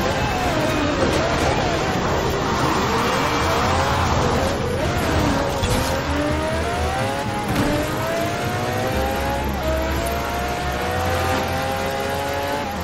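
A racing car engine roars and revs up through its gears.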